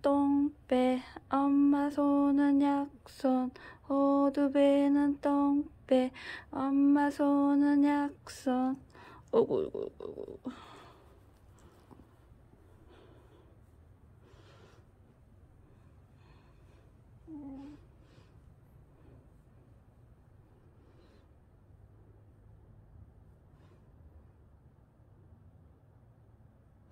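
A hand softly strokes a dog's fur.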